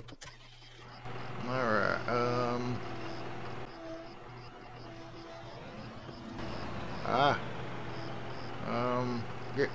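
A backhoe loader's diesel engine idles.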